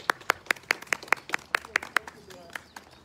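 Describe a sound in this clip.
An elderly woman claps her hands several times, quickly.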